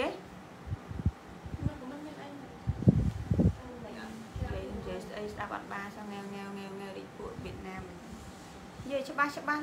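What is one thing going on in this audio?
Clothing rustles as a garment is handled and unfolded.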